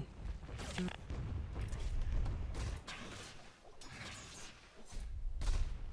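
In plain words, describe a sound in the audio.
Weapons clash and spells burst in a fight.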